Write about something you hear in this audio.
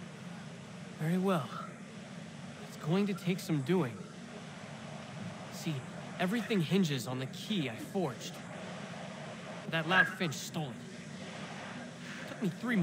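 A young man speaks with feeling, heard through a game's sound.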